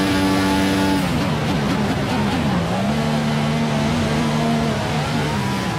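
A racing car engine drops in pitch as the car brakes and downshifts, then drones at low revs.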